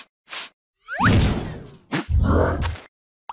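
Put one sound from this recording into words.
A large creature roars close by.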